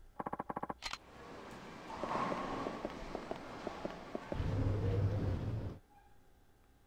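Bowling balls roll and pins clatter in a large echoing hall.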